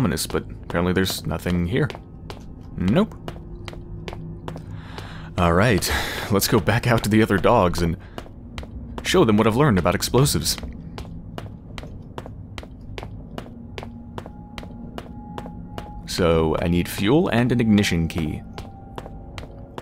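Footsteps fall steadily on a hard floor.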